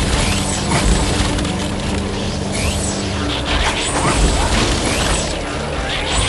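Laser shots zap repeatedly.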